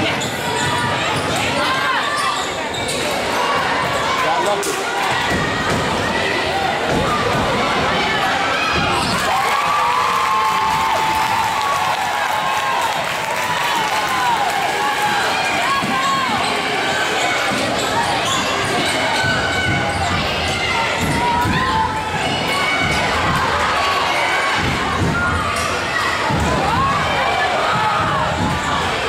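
Young women shout and call out across an echoing gym.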